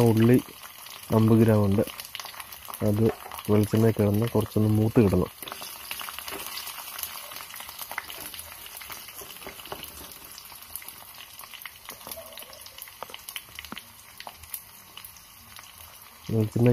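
Oil sizzles and crackles in a pan.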